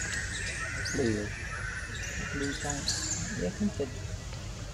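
A baby monkey gives a few soft, high squeaks.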